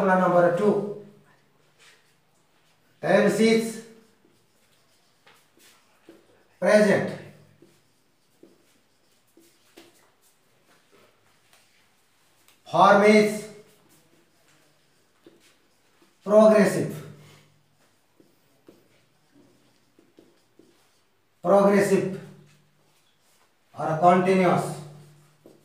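A man speaks short phrases aloud, with pauses in between.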